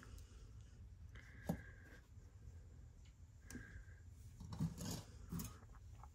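Small metal trinkets clink and rattle against each other.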